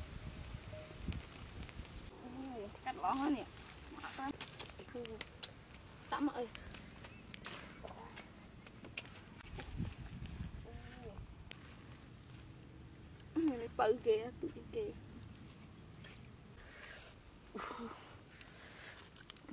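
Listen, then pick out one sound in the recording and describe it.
Charcoal crackles and pops in a fire.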